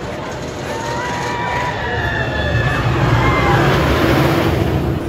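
Riders scream and cheer on a roller coaster.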